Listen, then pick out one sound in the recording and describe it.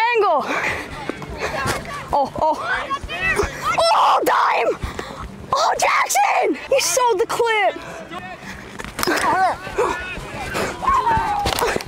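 Young boys shout loudly to one another outdoors.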